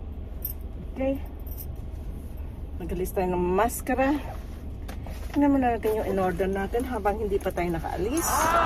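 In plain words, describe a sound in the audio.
A middle-aged woman talks calmly, close by.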